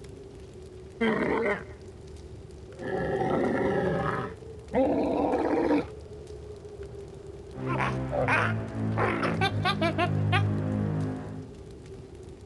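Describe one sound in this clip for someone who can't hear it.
A creature roars and screeches loudly.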